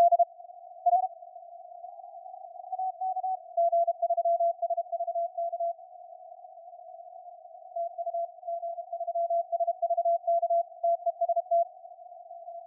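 Faint radio static hisses in the background.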